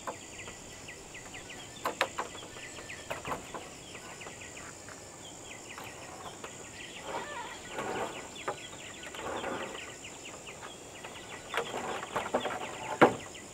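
Wooden beams knock and clatter as they are handled.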